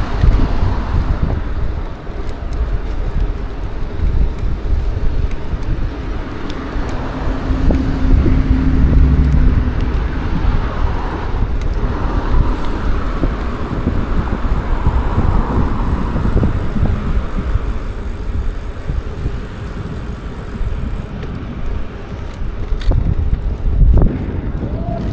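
Bicycle tyres rumble steadily over paving stones.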